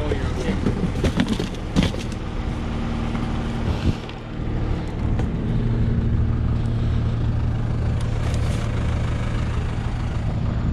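A tractor engine hums steadily close by.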